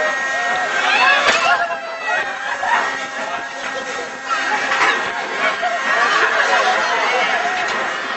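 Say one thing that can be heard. Riders on a thrill ride scream and shout with excitement.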